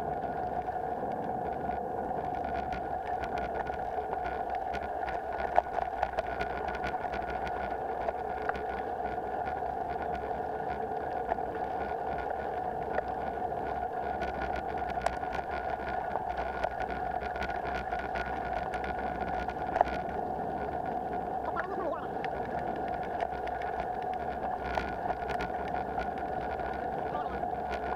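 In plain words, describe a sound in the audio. Tyres crunch and rattle over a gravel track.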